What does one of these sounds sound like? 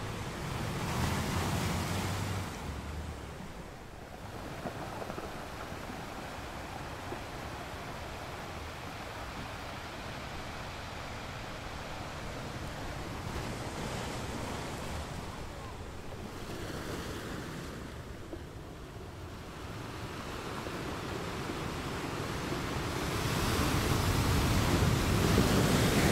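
Surf washes and foams over rocks in a steady roar.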